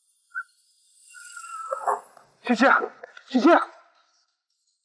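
A young man calls out urgently.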